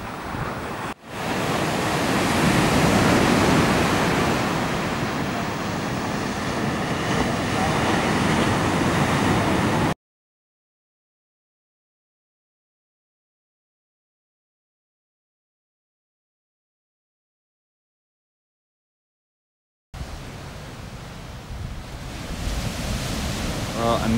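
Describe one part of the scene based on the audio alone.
Waves break and crash with a steady roar.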